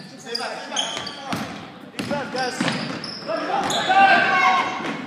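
Spectators and players shout and cheer in an echoing gym.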